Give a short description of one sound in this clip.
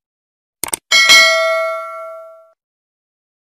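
A notification bell chimes brightly and rings out.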